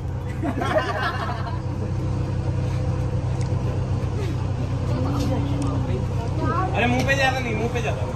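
Young men and women chatter and laugh close by.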